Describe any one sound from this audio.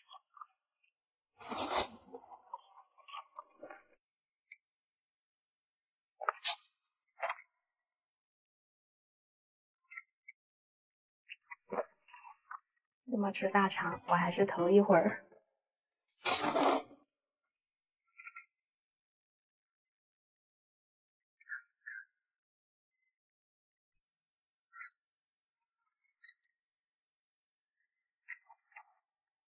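A young woman chews wetly, close up.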